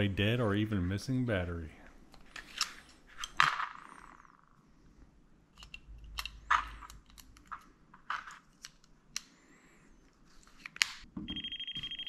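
A plastic tool clicks and taps as hands handle it.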